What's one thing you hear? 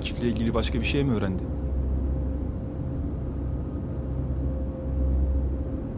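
A car hums low, heard from inside the cabin.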